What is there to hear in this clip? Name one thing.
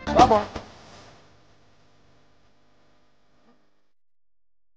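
A band plays lively music through loudspeakers.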